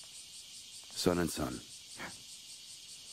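A man speaks briefly and quietly.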